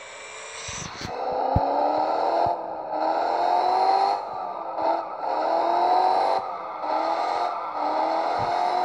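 A car engine revs, rising in pitch again and again.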